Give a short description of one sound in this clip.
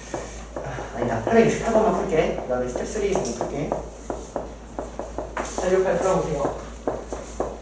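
A young man speaks calmly and clearly into a microphone.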